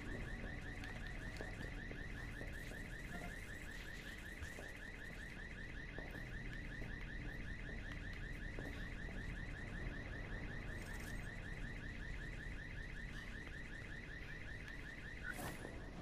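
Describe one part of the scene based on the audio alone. Footsteps move softly over a metal grating.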